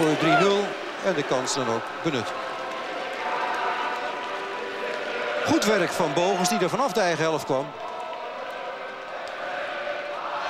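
A crowd murmurs in an open stadium.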